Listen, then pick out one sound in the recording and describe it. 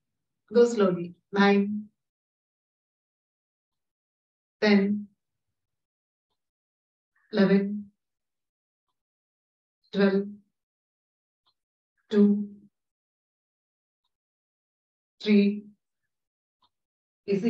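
A woman calls out short instructions over an online call, pausing between each.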